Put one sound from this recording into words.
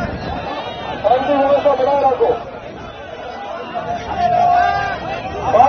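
A man speaks loudly into a microphone over a loudspeaker.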